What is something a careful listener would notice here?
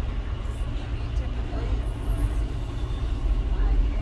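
A young woman talks quietly close by.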